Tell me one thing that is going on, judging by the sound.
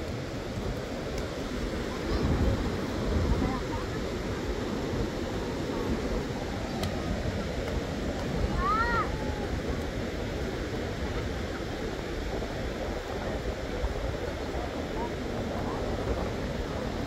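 Children and adults chatter and call out in the distance.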